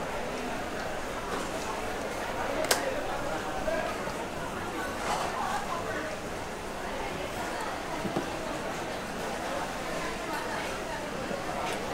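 A metal ladle clinks and scrapes against a pot.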